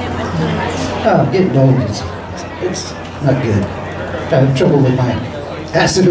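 A man sings into a microphone through loudspeakers.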